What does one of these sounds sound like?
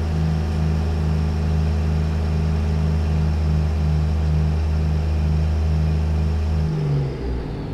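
A heavy truck engine rumbles with a deep, steady throb.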